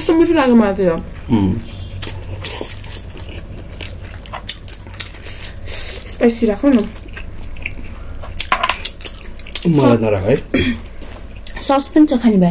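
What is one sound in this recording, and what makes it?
A man and a woman chew food with wet, crunchy smacking sounds, close up.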